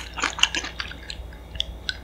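A young woman gulps a drink from a glass mug close to a microphone.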